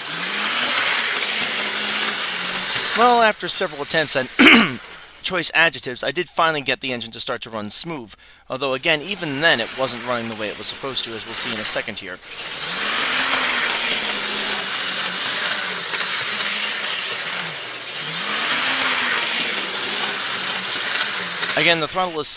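A small electric toy train motor whirs steadily as the train circles a track.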